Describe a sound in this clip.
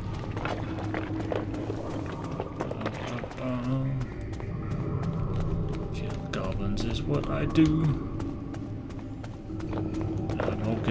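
Quick footsteps tap steadily on a hard stone floor.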